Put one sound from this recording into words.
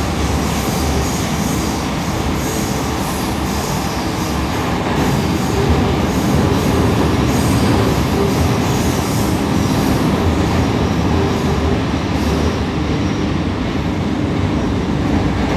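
A metro train runs at speed through a tunnel, with a steady rumble and roar of wheels on rails.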